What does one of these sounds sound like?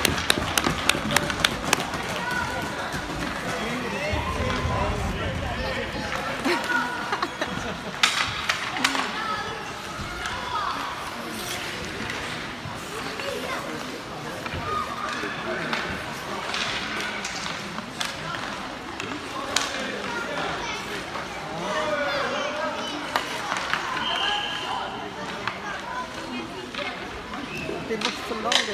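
Hockey sticks clack sharply against the ice and the puck.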